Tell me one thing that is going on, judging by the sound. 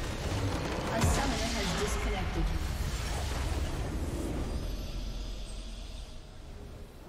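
A large magical blast booms and fades.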